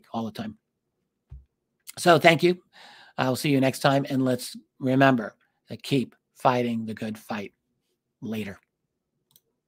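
A middle-aged man speaks calmly and with animation into a close microphone, heard through an online call.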